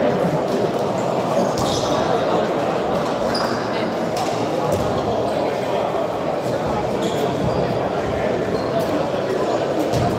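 A ball bounces on the floor.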